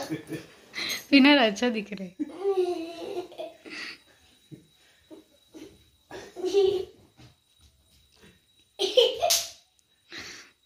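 A young boy laughs.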